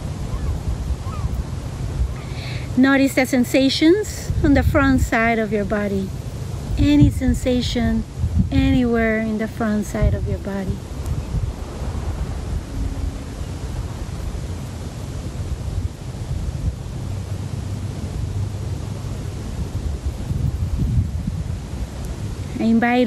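Wind buffets the microphone outdoors throughout.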